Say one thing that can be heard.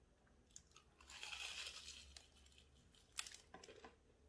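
A woman bites into crispy fried food with a loud crunch, close to a microphone.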